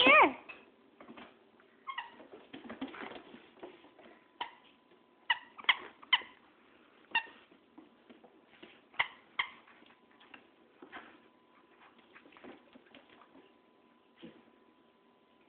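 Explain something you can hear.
A dog's claws click and skitter on a wooden floor.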